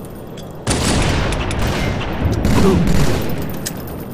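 Rapid gunfire bursts in a video game.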